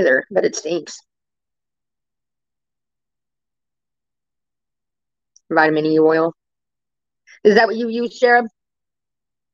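A woman speaks casually into a microphone on an online call, with pauses.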